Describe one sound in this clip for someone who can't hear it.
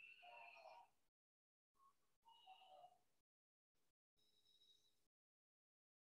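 A young man speaks in short bursts through an online call.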